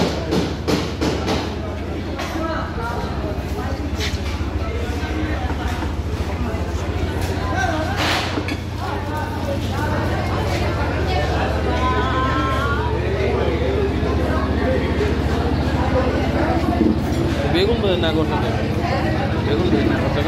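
A crowd of men, women and children chatter throughout in a busy room.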